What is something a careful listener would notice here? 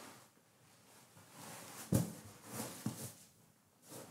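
Fabric rustles as a cushion is moved.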